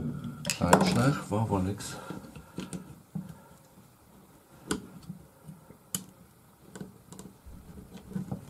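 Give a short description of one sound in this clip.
Small metal parts click and rattle under hands at work.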